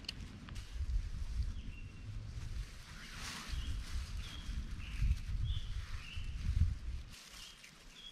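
Tent fabric rustles and flaps.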